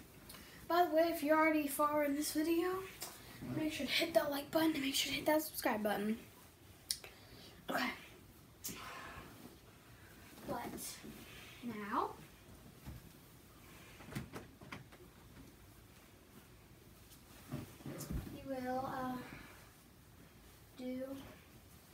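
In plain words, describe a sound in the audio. A young girl sings close by.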